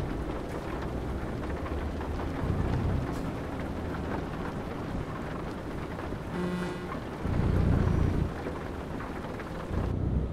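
A truck engine rumbles steadily while driving on a highway.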